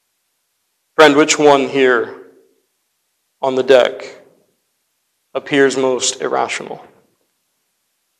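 A young man speaks calmly through a microphone, in short phrases with pauses.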